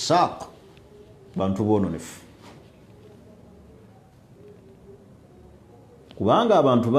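A man speaks with emphasis, close to a microphone, pausing between phrases.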